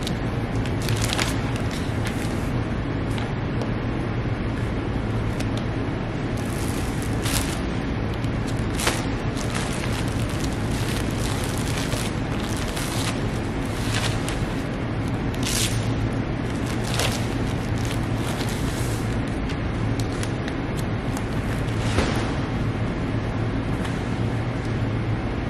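Paper slides and taps on a tabletop.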